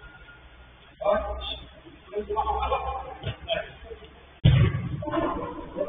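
Young men shout and call out to each other across a large echoing hall.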